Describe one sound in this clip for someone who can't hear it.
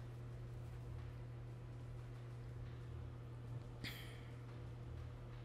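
A spaceship's engine hums low and steady.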